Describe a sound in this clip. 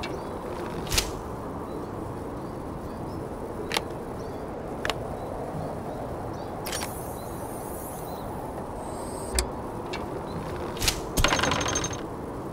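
An arrow whooshes off a bowstring.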